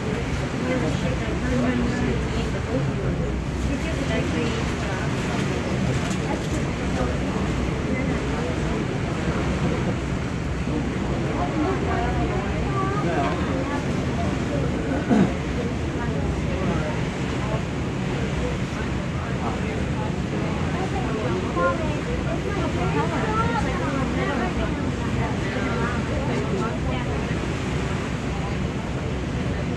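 Wind blusters steadily into the microphone outdoors.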